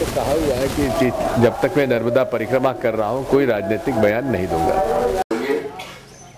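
An elderly man speaks calmly to reporters close by.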